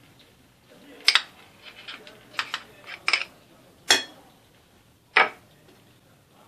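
A metal spoon clinks and scrapes against a glass bowl.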